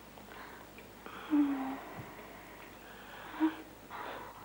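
A woman moans softly close by.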